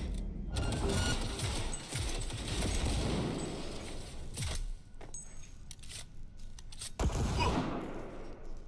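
A gun fires loud shots in quick bursts.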